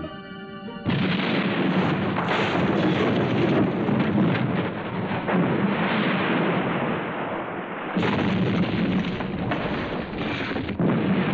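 Explosions boom and roar, echoing through a cave.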